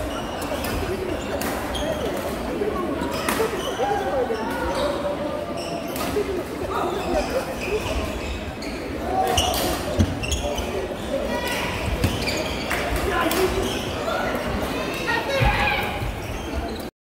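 Shuttlecocks are struck with sharp pops of rackets.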